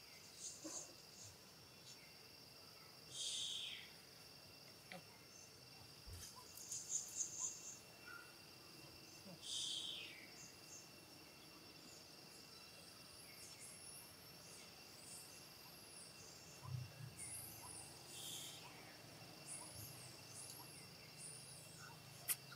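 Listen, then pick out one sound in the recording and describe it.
Dry leaves rustle as monkeys move about.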